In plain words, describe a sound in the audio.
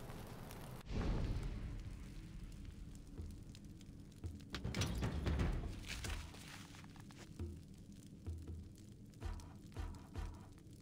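Soft interface clicks tick as menu items change.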